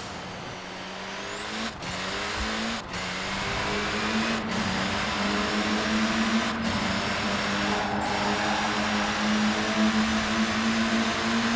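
A car engine roars loudly, revving higher and dropping briefly with each quick gear change.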